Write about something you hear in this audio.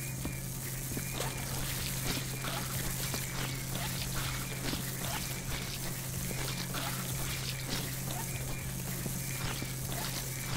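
A water sprayer hisses steadily.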